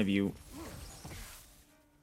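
Magic lightning crackles in a video game.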